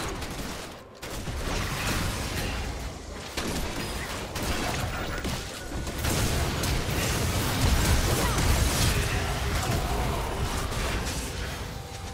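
Magic blasts and hits crackle and boom in a fast fight.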